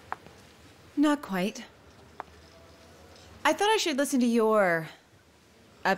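A young woman speaks quietly and hesitantly, close by.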